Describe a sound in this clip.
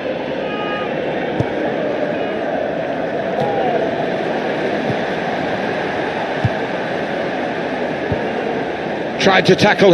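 A football is kicked with dull thumps.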